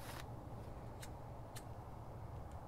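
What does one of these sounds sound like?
A cigarette lighter clicks and sparks.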